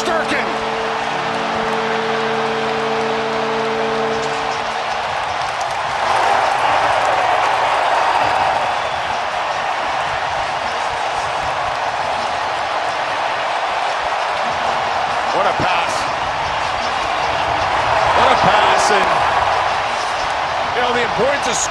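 A large crowd cheers and roars in a big echoing arena, swelling louder at times.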